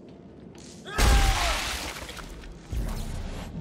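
A loud crash bursts out and crackles away.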